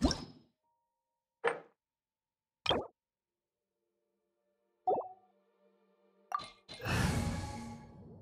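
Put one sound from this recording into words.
Soft menu clicks and chimes sound as options are selected.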